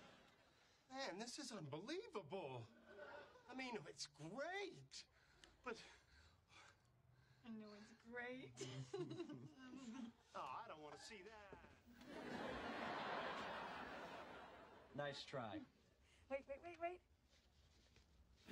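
A woman speaks brightly and laughs close by.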